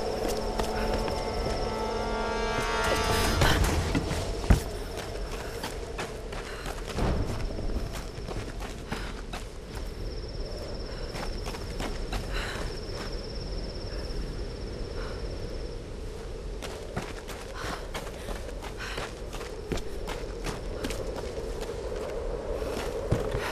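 Footsteps crunch steadily over stone and grass.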